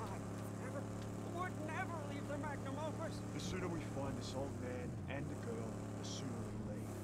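A man talks close to a microphone.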